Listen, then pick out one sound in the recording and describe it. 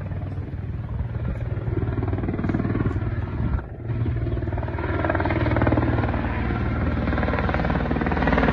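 A helicopter's rotor thumps steadily overhead, growing louder.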